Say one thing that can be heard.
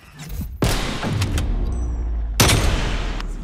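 A rifle fires loud booming shots.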